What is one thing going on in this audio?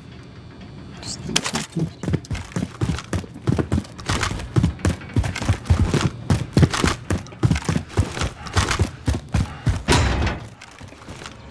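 Heavy footsteps run quickly up stone stairs.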